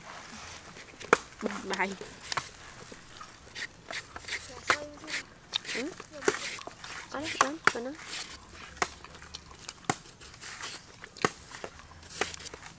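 A knife scrapes and clicks as it peels soft fruit.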